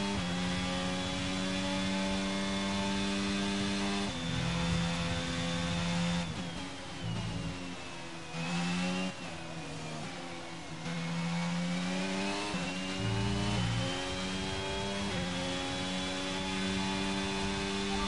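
A racing car engine whines at high revs, dropping in pitch for corners and rising again with each gear shift.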